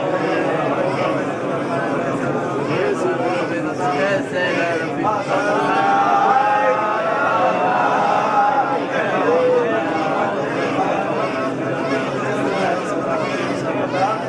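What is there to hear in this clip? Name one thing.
Many men pray aloud together in a murmuring chant.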